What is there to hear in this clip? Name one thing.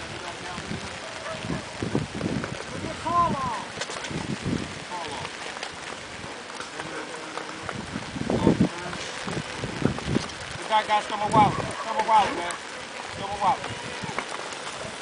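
Men talk outdoors, close by.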